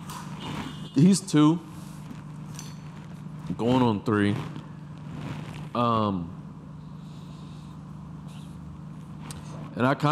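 A man speaks in short, lively bursts close to a microphone.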